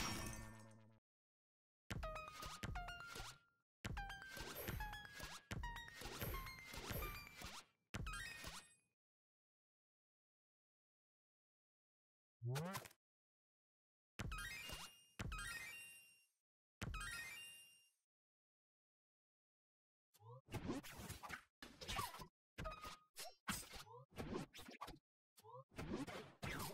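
Short bright chimes ring out in quick runs.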